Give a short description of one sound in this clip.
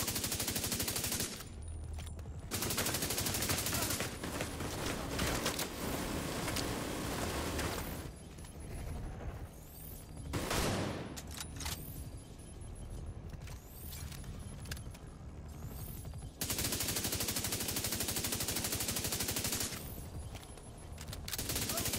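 Rapid gunfire rattles in long bursts.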